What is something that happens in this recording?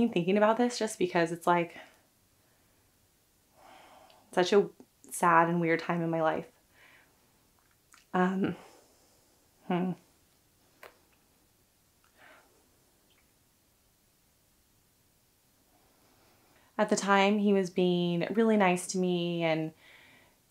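A young woman talks calmly and close up, in short bursts with pauses.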